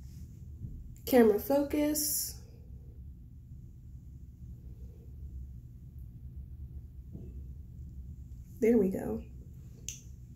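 A young woman speaks briefly and casually close by.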